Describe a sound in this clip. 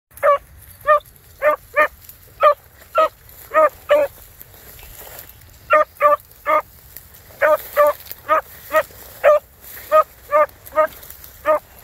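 A dog barks repeatedly close by.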